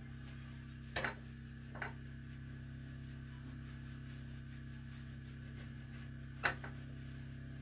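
A metal object knocks and clanks against a stove a few times.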